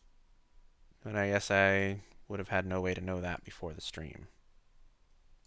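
A young man speaks with animation, close to a microphone.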